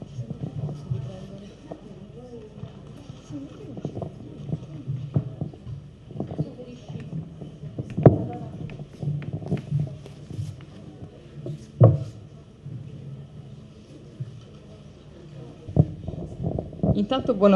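Several people talk quietly nearby.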